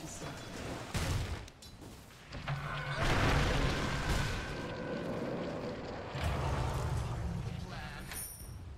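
Game fighting sounds of clashing blows and spell effects play.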